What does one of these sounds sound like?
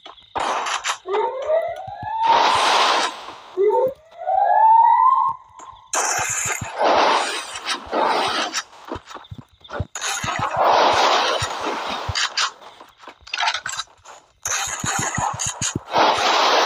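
Walls of ice burst up with loud whooshes, again and again.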